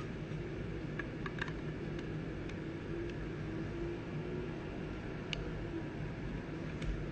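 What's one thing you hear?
A plastic card case clicks and taps softly in hands.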